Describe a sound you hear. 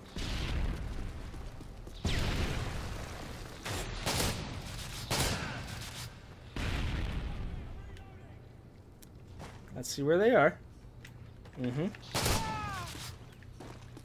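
Gunshots fire in loud bursts with echoing booms.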